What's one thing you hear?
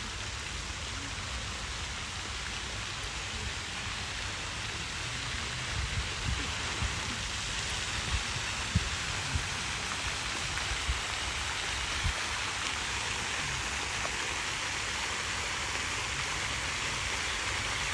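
Fountains splash and hiss steadily into a pool outdoors.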